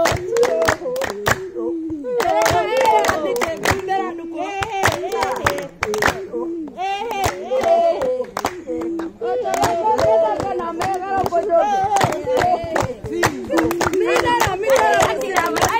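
A group of women clap their hands in a steady rhythm.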